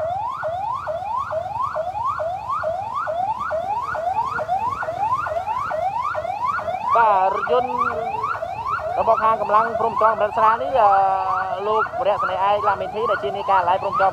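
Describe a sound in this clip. A police siren yelps in fast rising sweeps.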